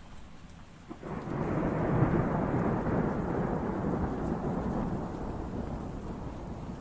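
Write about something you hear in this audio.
Heavy rain pours down against a window.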